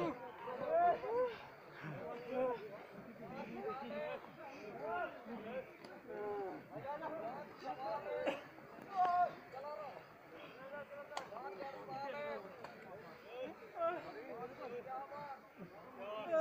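A large crowd of young men and women chatter and shout outdoors.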